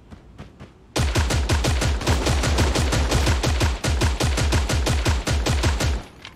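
A rifle fires in rapid, loud bursts.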